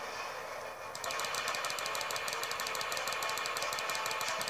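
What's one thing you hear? Quick footsteps patter from a video game played through small speakers.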